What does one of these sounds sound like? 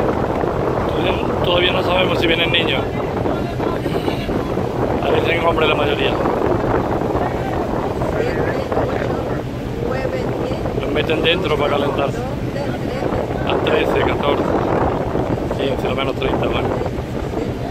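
A crowd of men and women shout and call out at a distance.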